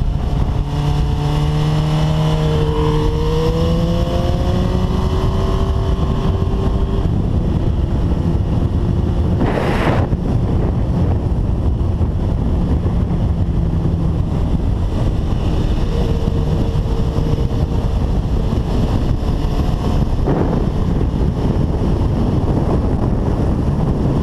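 A motorcycle engine roars loudly and revs up and down.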